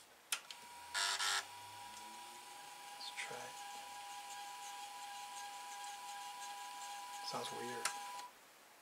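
A disk drive whirs with a steady high hum.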